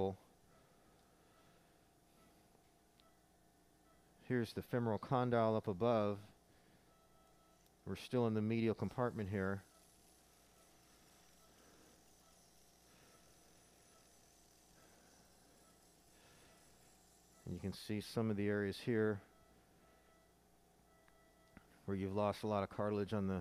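A surgical shaver whirs steadily.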